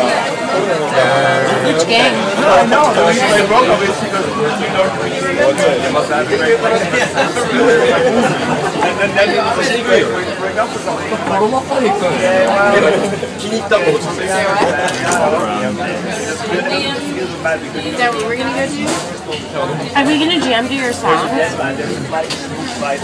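Several young men talk and laugh together close by.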